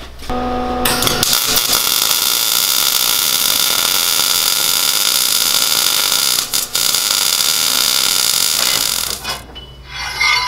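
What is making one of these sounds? A welder crackles and hisses steadily.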